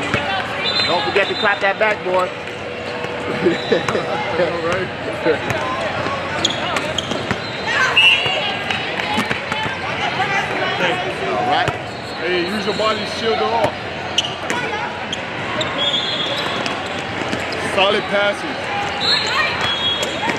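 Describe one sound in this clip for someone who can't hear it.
Spectators and players chatter and call out in a large echoing hall.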